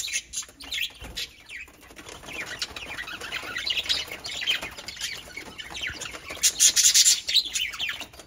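Budgies chirp and chatter busily close by.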